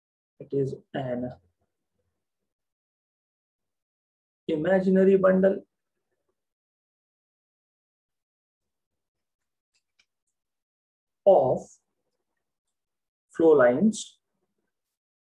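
A young man speaks calmly into a close microphone, in short phrases with long pauses.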